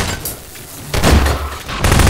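A crossbow fires a bolt with a sharp snap.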